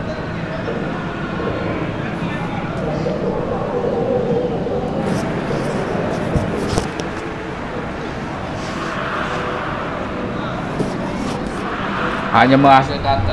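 People chatter softly nearby outdoors.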